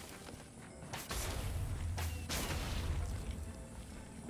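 A fiery blast bursts with a low rumble.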